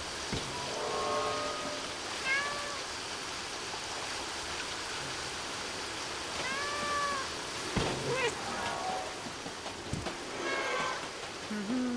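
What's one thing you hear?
Small animals chirp and squeak in short calls.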